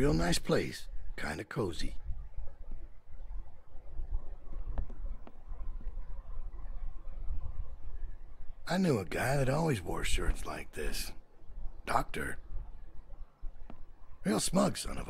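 A middle-aged man speaks.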